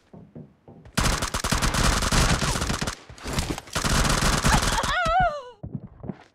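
Rapid gunfire rattles nearby.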